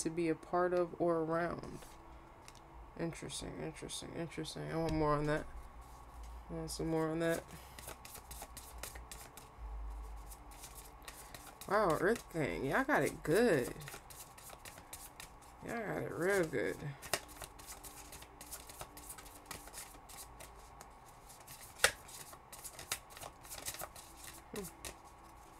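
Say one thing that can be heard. Playing cards rustle and tap as they are shuffled and handled.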